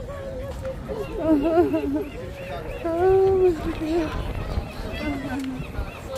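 Sea lions bark from the water nearby.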